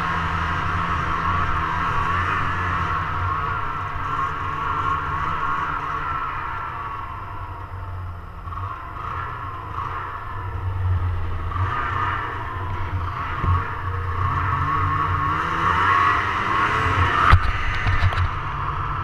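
A snowmobile engine drones steadily close by, rising and falling as it speeds up and slows.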